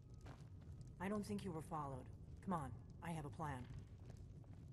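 A woman speaks calmly and quietly.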